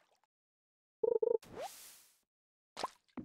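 A short bright chime rings as a fish is caught.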